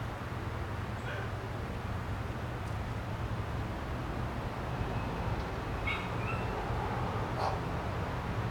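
A small bird chirps briefly a few times.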